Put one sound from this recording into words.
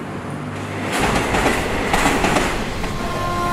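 A freight train rolls past on the tracks.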